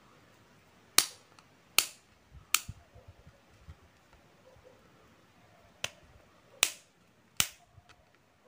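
Pliers snip with sharp clicks.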